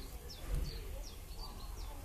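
A rabbit chews on grass.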